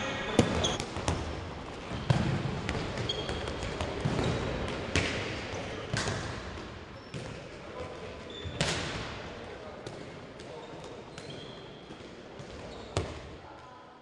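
Handballs bounce and thud on a hard floor in a large echoing hall.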